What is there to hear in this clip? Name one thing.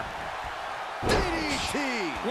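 A body slams down onto a wrestling ring mat with a heavy thud.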